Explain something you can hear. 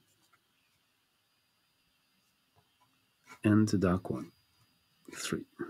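A dry pastel rubs softly across paper.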